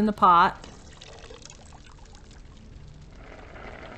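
Water pours from a bucket into a metal pot.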